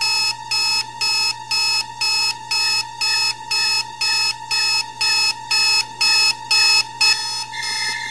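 An alarm clock beeps loudly in a fast, steady rhythm.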